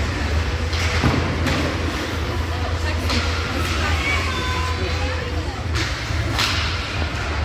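Hockey sticks clack against the puck in a large echoing rink.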